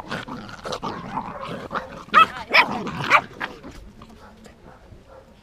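Puppy paws scuffle on grass and dirt.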